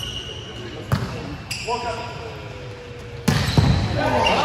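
A volleyball is struck hard with a slap.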